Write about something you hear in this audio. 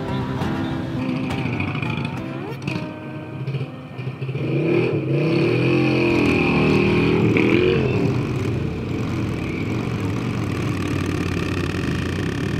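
Motorcycle engines rumble and idle close by.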